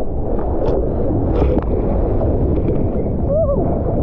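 A wave curls and breaks right overhead.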